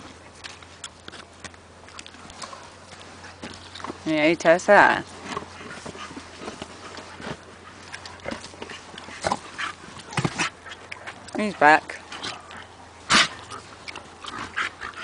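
Dogs scuffle and scrape their paws through sand.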